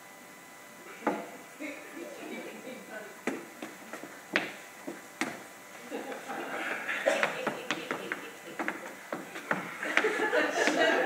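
Footsteps thump on a wooden floor.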